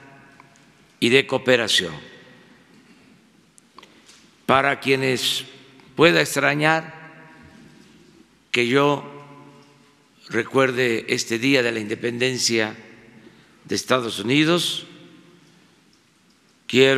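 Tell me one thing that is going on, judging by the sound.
An elderly man speaks slowly and deliberately into a microphone, with long pauses.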